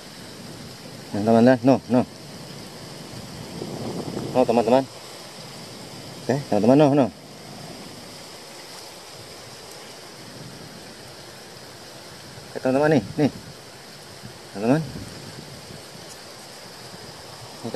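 Water trickles gently over mud.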